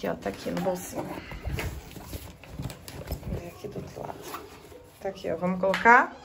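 A backpack zipper rasps open.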